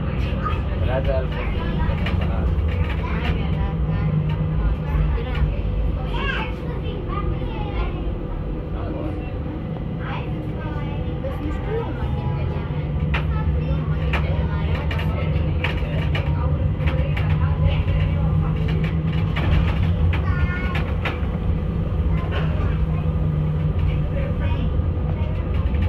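A vehicle rumbles steadily as it rolls along a street.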